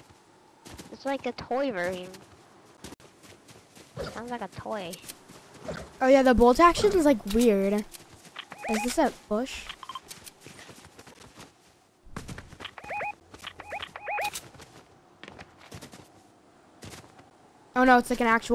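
A boy talks excitedly into a close microphone.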